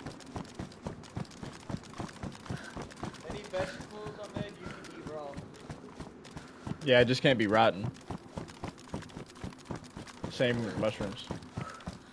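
Footsteps crunch quickly on gravel.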